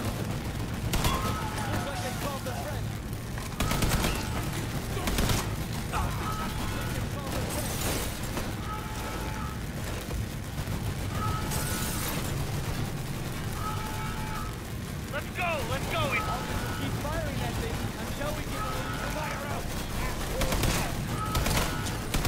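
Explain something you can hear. Gunfire bursts and cracks repeatedly.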